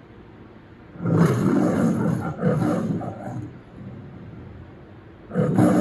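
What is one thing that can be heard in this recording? A lion roars loudly through a television speaker, in two bursts.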